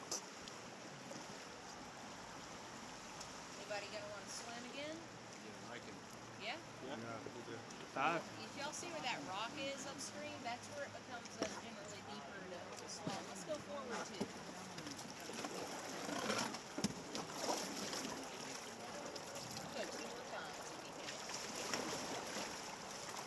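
Water laps against a raft.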